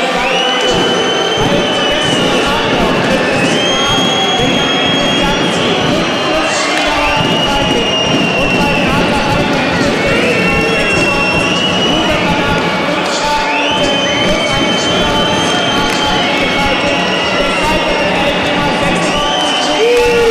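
A large crowd chants and cheers in an echoing arena.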